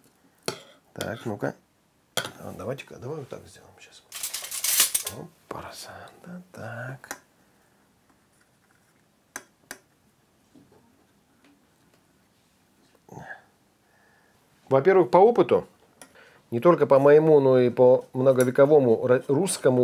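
A metal spoon scrapes inside a metal pot.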